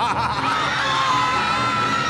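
A crowd screams in terror.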